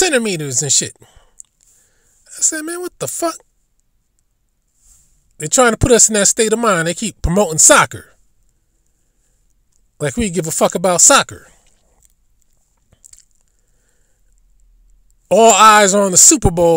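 A man speaks loudly and with animation, in short bursts with pauses between them.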